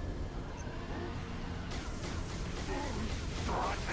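Gunfire bursts out in quick shots.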